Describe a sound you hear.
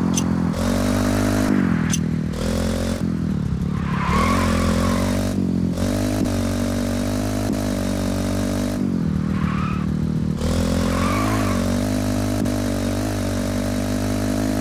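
A motorcycle engine roars and revs up and down.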